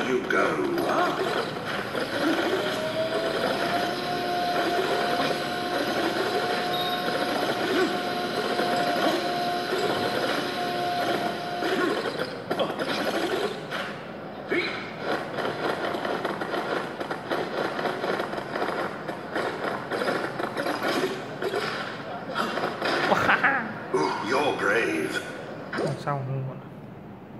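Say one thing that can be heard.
Cheerful game music plays from a tablet's small speaker.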